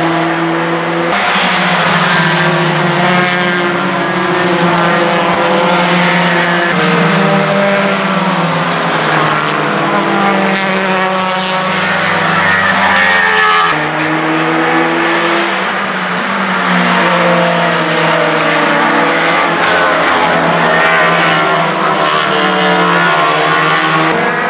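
Racing car engines scream at high revs, rising and falling in pitch as cars speed past.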